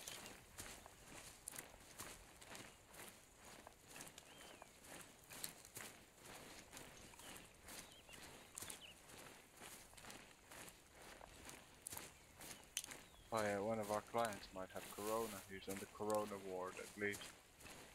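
Leafy branches rustle as they are pushed aside.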